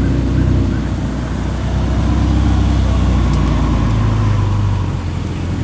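A sports car engine burbles loudly close by as the car pulls past and away.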